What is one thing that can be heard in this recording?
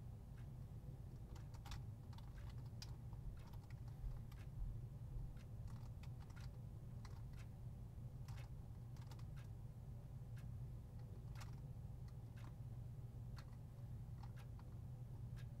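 Short electronic blips from a video game tick and click irregularly.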